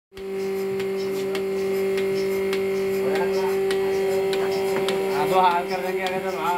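A milking machine hums steadily.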